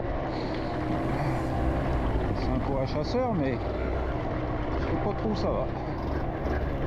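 A motorcycle engine rumbles steadily, its pitch rising and falling.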